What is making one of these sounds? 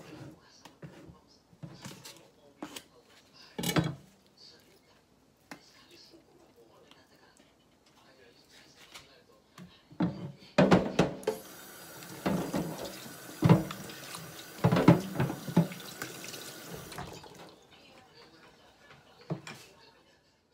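Dishes and utensils clatter and knock.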